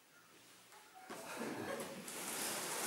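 A man pushes stacked cardboard boxes, which scrape and rustle.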